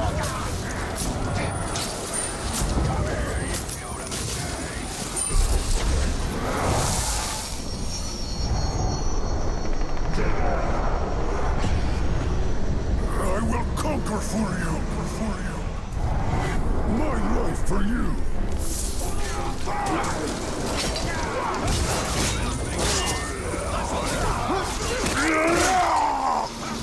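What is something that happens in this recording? Metal blades clash and clang in a fight.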